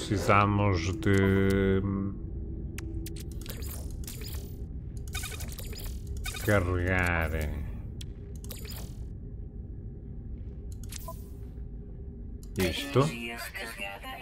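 A man speaks close to a microphone in short bursts, with animation.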